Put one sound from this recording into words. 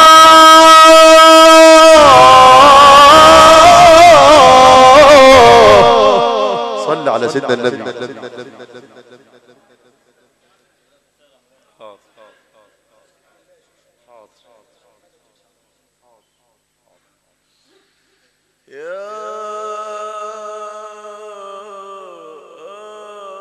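A man chants a long, drawn-out melodic recitation through a microphone in an echoing hall.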